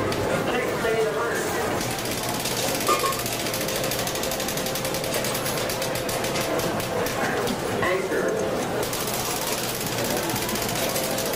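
A crowd of adults murmurs and chatters in the background.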